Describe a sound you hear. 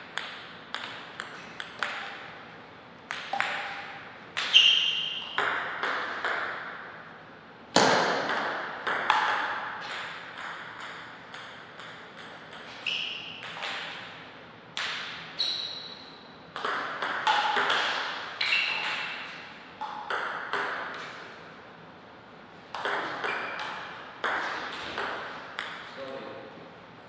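A table tennis ball clicks back and forth off paddles and a table in a reverberant hall.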